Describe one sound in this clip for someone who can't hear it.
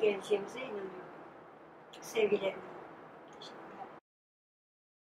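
A woman speaks calmly and close into a microphone.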